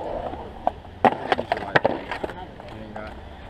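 A skateboard clatters and knocks against concrete.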